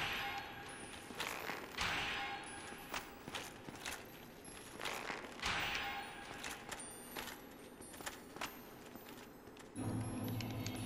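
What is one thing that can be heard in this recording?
Heavy metallic blows and thuds ring out from a game.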